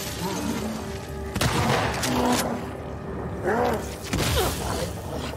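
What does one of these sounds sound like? A gunshot bangs sharply.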